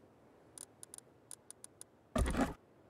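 Soft menu clicks tick in quick succession.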